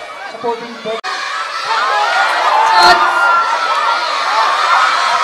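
A crowd of children shouts and cheers excitedly outdoors.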